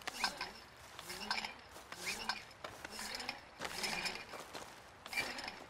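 Footsteps crunch steadily over snowy, stony ground.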